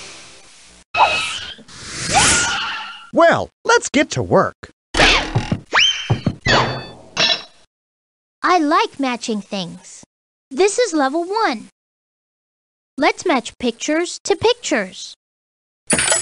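A cartoon man speaks with animation in a bright, playful voice.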